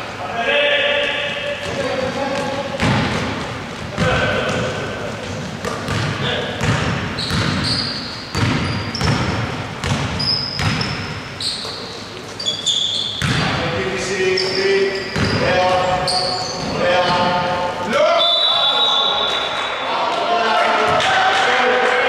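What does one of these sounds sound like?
Men shout to one another across the court.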